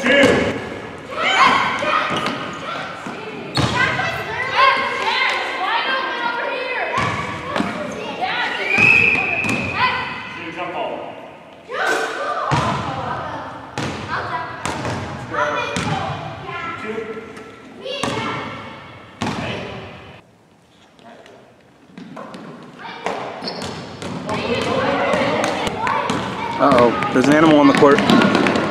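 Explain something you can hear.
Children shout and chatter excitedly in a large echoing gym.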